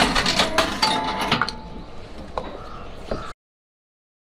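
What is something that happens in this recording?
A slip of paper rustles as a hand pulls it from a metal slot.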